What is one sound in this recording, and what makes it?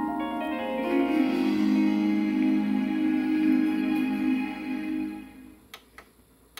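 Orchestral fanfare music plays from a television.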